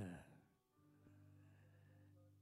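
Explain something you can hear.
A keyboard plays soft, steady chords.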